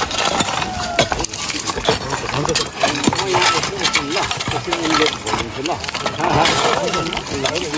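Shovels and hoes scrape and clink against stones and gravel.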